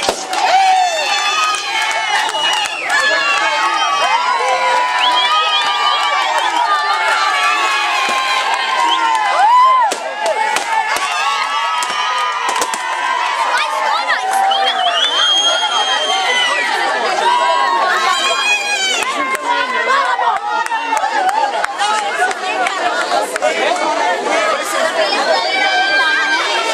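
A crowd of young women screams and shrieks excitedly close by.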